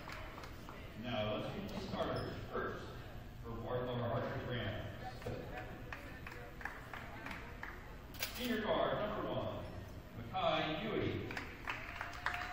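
A man talks nearby in an echoing hall.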